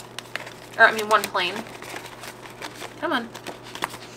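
Paper bills rustle as they are handled.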